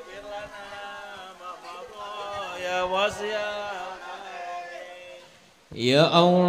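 A crowd of men chants together in unison.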